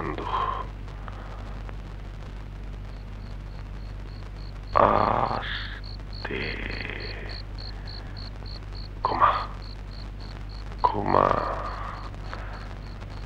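A man speaks in short, tense bursts.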